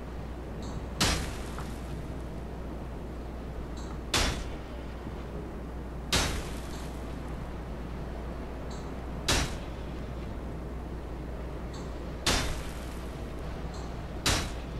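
A sword swings and strikes with sharp, sudden whooshing hits every few seconds.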